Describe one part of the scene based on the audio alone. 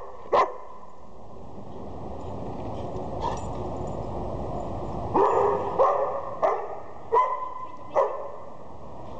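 Dogs bark sharply with a hollow echo.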